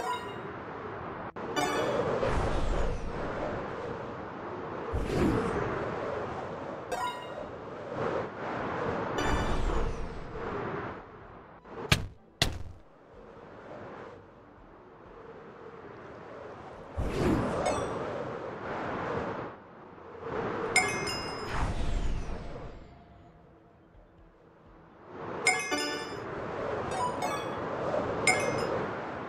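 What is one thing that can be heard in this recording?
Wind rushes past in swelling and fading gusts.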